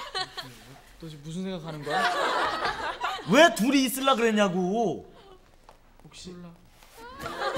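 A second young man answers in a low, sulky voice, close by.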